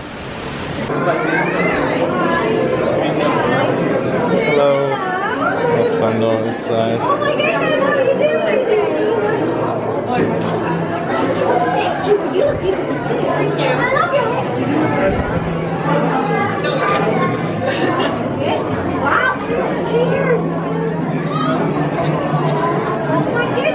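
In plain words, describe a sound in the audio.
A young woman talks excitedly and laughs nearby.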